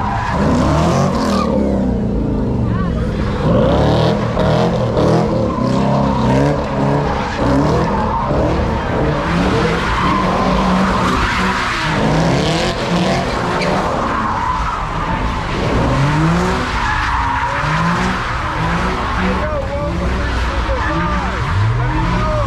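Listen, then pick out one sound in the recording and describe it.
A crowd of young people shouts and cheers outdoors.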